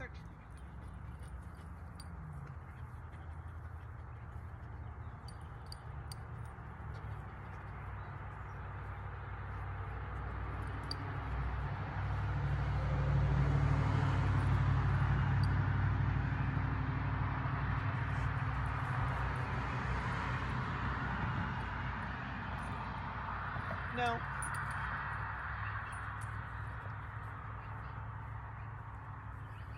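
Wind blows steadily outdoors and swells for a while before easing.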